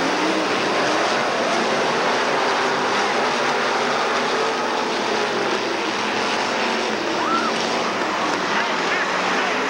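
Race car engines roar loudly as the cars speed past.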